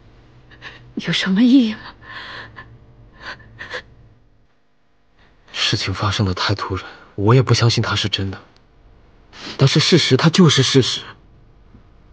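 A young woman speaks tearfully, her voice shaky, close by.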